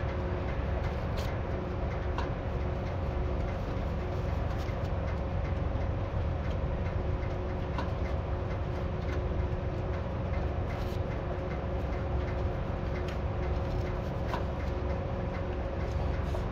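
Clods and stones knock against the metal frame now and then.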